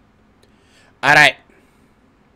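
A young man shouts loudly over an online call.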